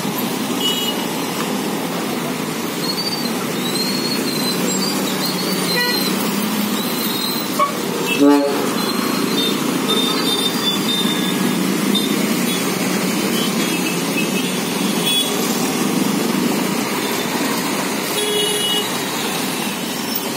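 Tyres hiss on wet asphalt.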